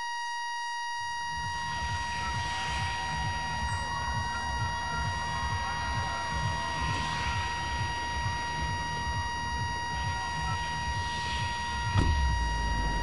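An engine hums steadily overhead.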